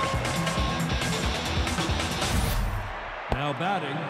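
A crowd cheers loudly in a stadium.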